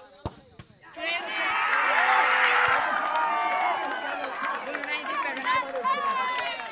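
A crowd cheers and yells loudly.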